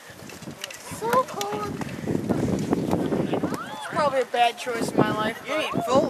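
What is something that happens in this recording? Teenage boys talk excitedly close by, outdoors.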